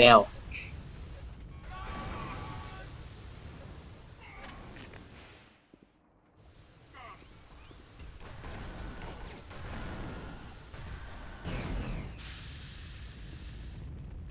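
An energy weapon fires with whooshing blasts.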